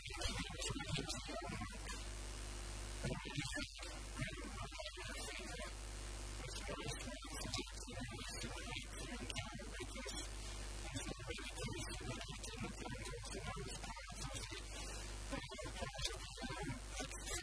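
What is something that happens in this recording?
A middle-aged man speaks calmly through a handheld microphone.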